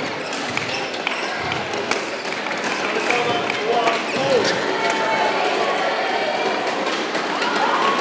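A racket strikes a shuttlecock with sharp pops.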